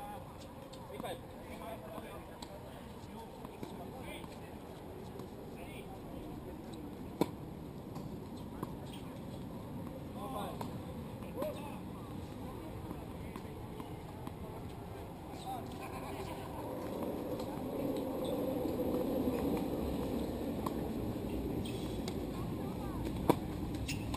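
Tennis balls are struck with rackets, with sharp pops.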